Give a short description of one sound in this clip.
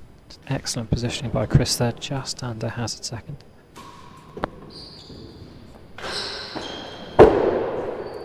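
A ball is struck hard with a racket and echoes around a large hall.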